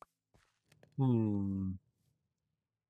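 A young man hums a long low note.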